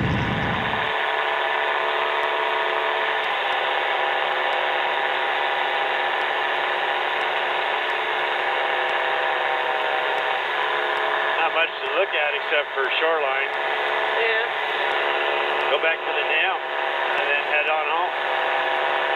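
A small aircraft engine drones steadily with a whirring propeller.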